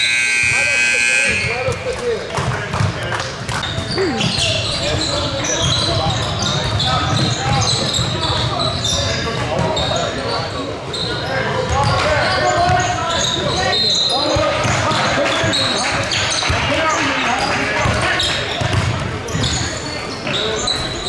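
A crowd of people chatters and shouts in a large echoing hall.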